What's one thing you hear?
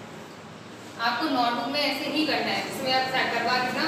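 A woman speaks clearly, like a teacher explaining.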